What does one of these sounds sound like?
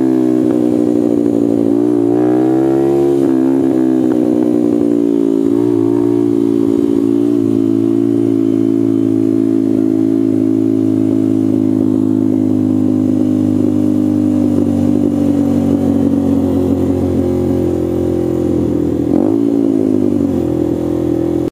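Wind buffets against a rider's helmet.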